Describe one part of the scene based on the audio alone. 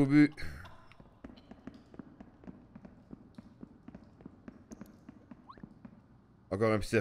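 Light footsteps tap quickly.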